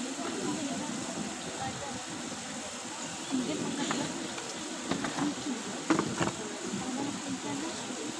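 A crowd of children murmurs and chatters in a large echoing hall.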